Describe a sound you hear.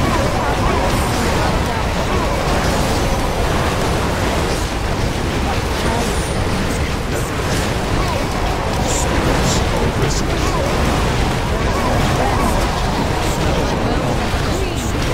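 Swords and weapons clash rapidly in a busy battle.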